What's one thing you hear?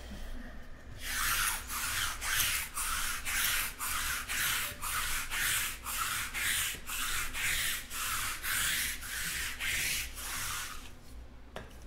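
A roller rasps back and forth in quick, even strokes.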